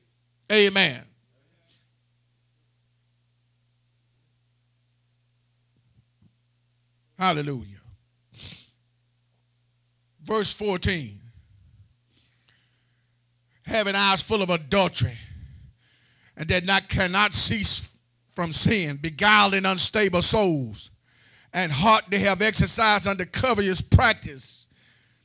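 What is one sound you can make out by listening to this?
A man preaches into a microphone with emphasis, in bursts separated by pauses.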